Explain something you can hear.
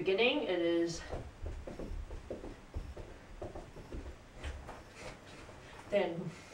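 Footsteps thump on the floor as a young woman dances.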